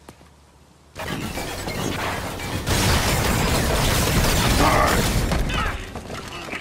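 Explosions blast and roar loudly.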